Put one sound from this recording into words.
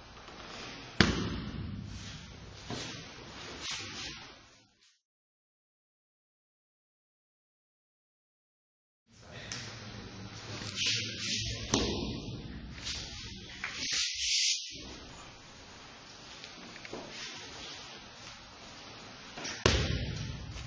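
A body thuds heavily onto a mat.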